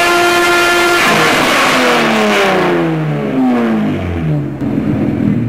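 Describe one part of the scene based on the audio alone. A car engine's revs drop quickly and wind down.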